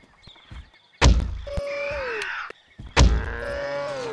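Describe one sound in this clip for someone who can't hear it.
A crossbow fires with a sharp, heavy thump.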